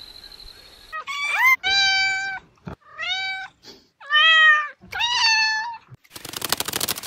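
A cat meows repeatedly, close by.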